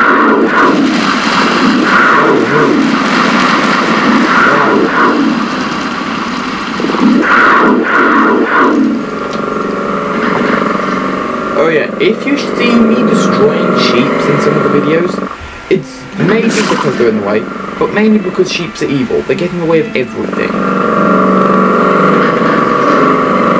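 Creatures screech and growl.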